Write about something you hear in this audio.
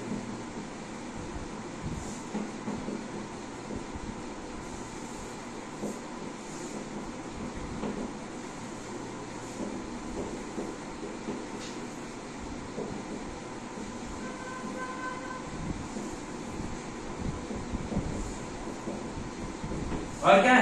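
A marker squeaks faintly as it writes on a whiteboard.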